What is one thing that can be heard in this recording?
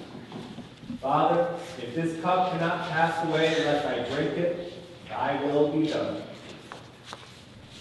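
A young girl reads aloud through a microphone in a large echoing hall.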